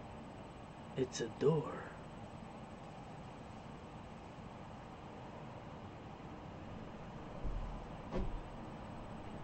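A man speaks briefly and casually close to a microphone.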